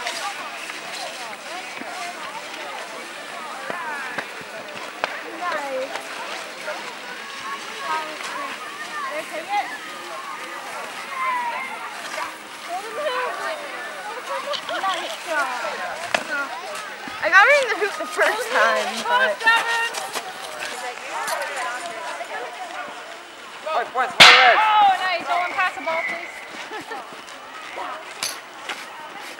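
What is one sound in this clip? Children shout and chatter outdoors.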